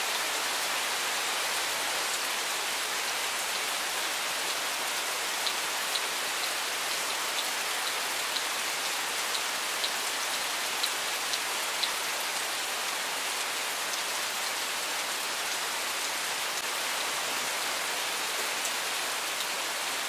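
Steady rain falls and patters on leaves and gravel.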